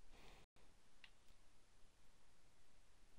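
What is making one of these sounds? A blaster fires short, sharp shots.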